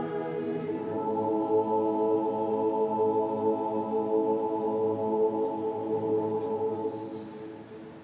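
A man chants through loudspeakers, echoing across a wide open square.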